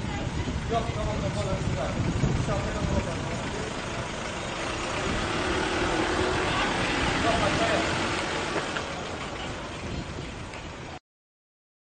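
A van engine runs as the van drives slowly past.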